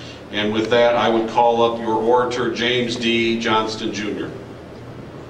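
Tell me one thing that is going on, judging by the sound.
A man reads out through a microphone.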